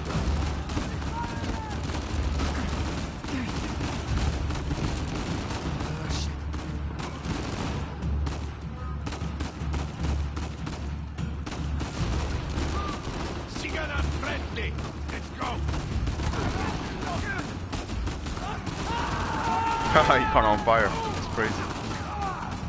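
Gunshots crack and echo in a large hall.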